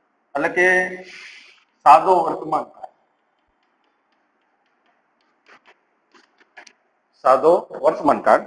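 A man speaks clearly and steadily, close by.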